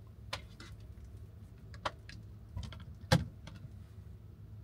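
Items knock and rattle.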